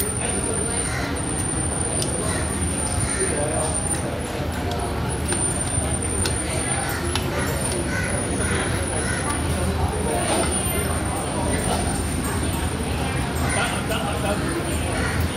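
A metal fork and spoon clink and scrape against a plate.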